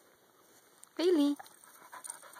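A dog yelps close by.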